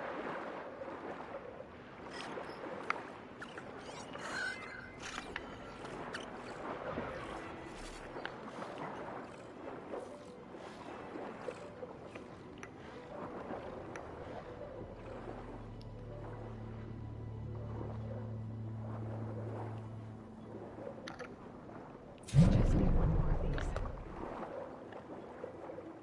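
Water bubbles and churns steadily around a swimmer underwater.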